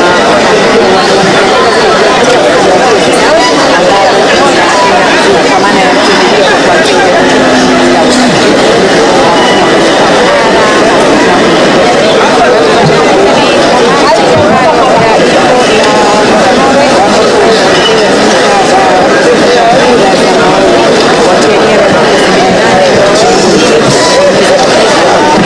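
A crowd of people chatter and murmur.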